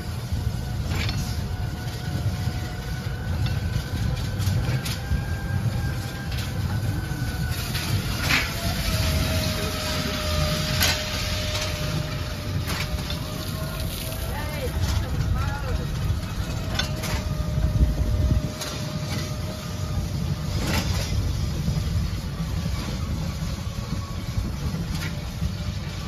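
A ride car's wheels knock over track joints.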